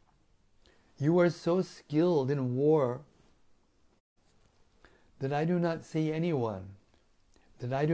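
An elderly man speaks calmly and slowly, close to a microphone.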